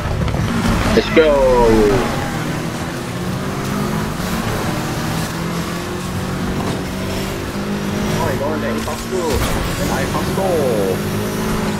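Tyres squeal on the road.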